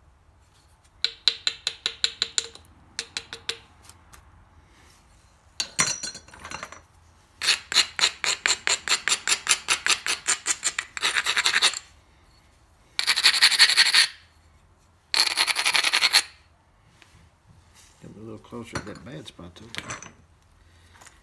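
A tool scrapes and taps against a stiff sheet of leather in quick strokes.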